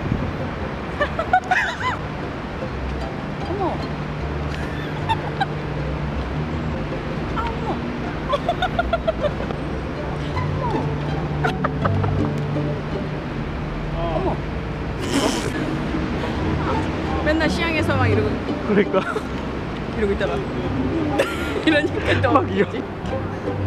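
A middle-aged woman talks casually close by.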